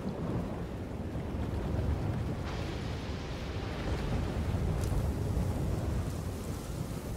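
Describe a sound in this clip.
Waves wash onto a shore in a steady rush.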